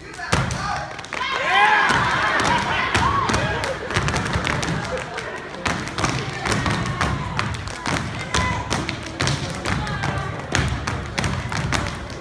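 Dancers clap their hands in a sharp rhythm.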